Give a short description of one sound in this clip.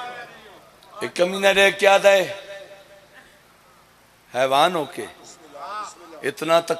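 A man sings out forcefully through a loudspeaker.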